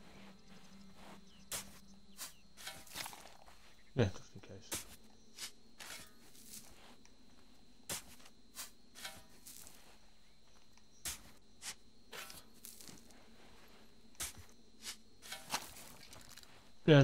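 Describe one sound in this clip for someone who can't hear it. A shovel digs into sand with repeated scraping thuds.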